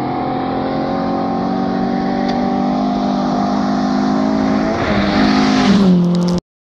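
A car engine roars closer, shifting gears as it speeds up outdoors.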